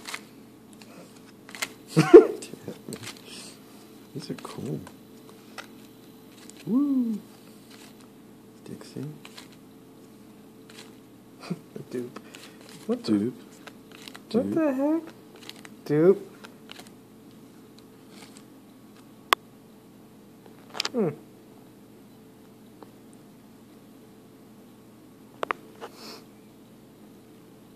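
Trading cards slide and flick against each other in the hands.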